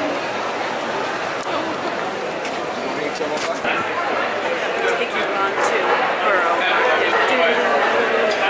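A crowd murmurs and chatters all around in a busy hall.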